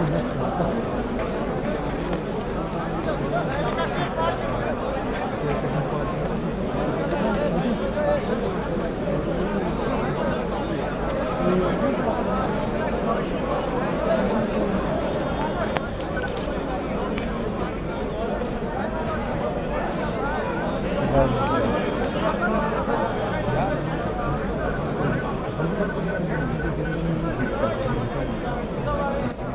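A large crowd of men murmurs and chants outdoors.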